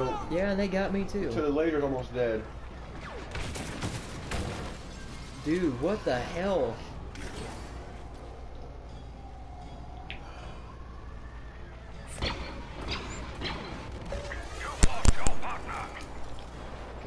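Laser guns fire in quick bursts.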